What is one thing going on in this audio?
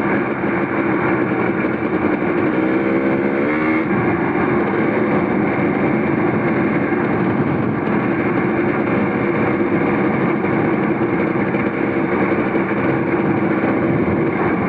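A motorcycle engine hums steadily, briefly revving up.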